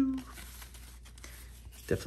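Cards slide and tap against each other.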